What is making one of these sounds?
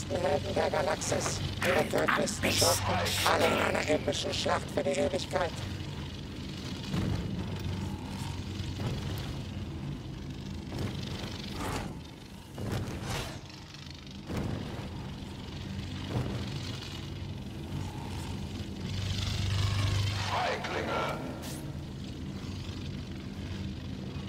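A lightsaber hums steadily.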